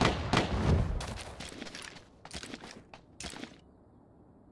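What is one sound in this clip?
Footsteps crunch over rock and grass.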